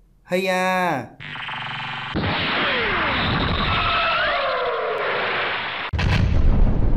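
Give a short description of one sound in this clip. An energy beam hums and crackles loudly.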